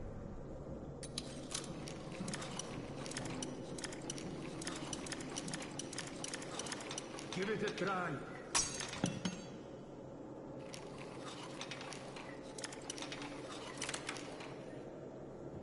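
A metal lock pick scrapes and clicks inside a lock.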